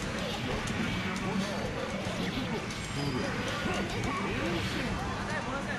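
Fighting game punches and blasts crash loudly.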